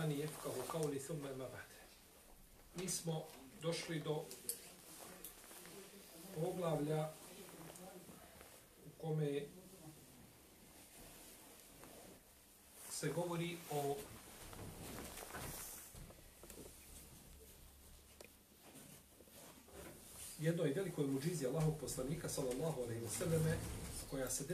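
A middle-aged man speaks calmly and slowly into a close microphone, with pauses.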